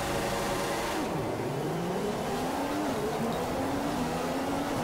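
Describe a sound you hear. A racing car engine roars and climbs in pitch through quick gear changes as it speeds away.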